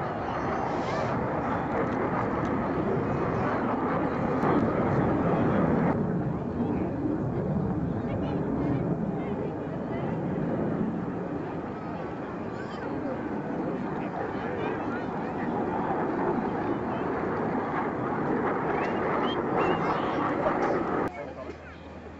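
A jet aircraft roars loudly overhead.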